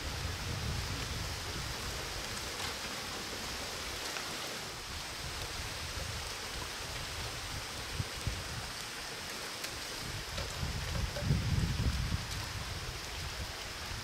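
Water trickles steadily into a pond outdoors.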